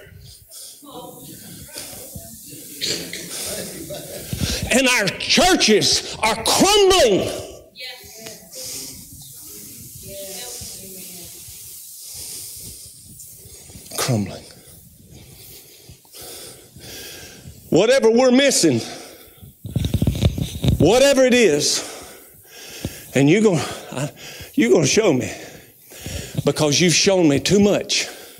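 A man preaches with animation into a microphone, his voice echoing in a large hall.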